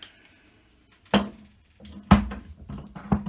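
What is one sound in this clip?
A metal frame clunks down onto a table.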